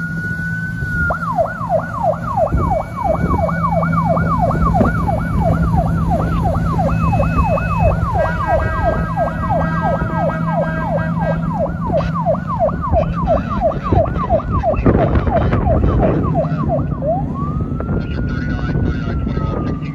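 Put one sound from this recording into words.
Churning water splashes in the boat's wake.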